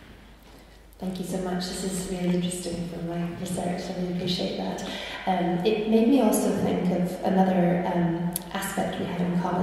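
A young woman speaks calmly into a microphone, heard through a loudspeaker.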